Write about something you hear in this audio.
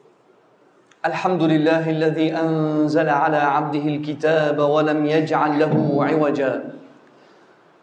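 A man chants in a long, melodic voice through a microphone, echoing in a large room.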